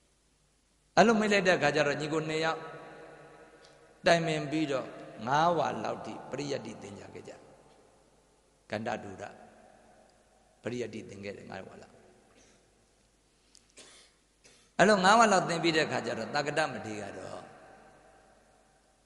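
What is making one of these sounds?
A man chants into a microphone in a slow, drawn-out voice, with pauses between phrases, in an echoing room.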